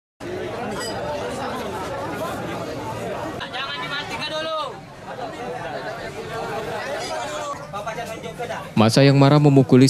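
A crowd of people talk and murmur all at once.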